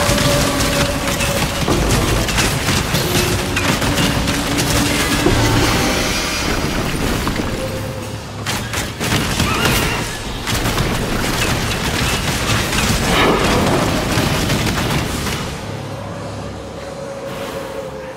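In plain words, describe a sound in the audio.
Spells crackle and explode in quick bursts.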